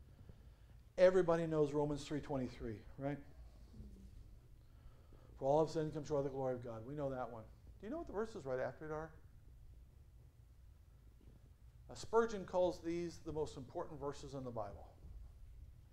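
A middle-aged man preaches with animation through a microphone, pausing between phrases.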